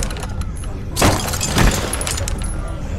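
A gunshot rings out loudly.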